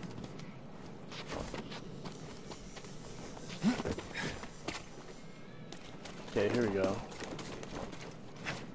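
Footsteps rustle through grass and plants.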